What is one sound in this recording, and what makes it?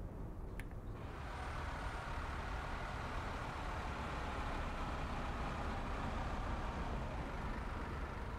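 A diesel engine roars louder as a bus drives past close by.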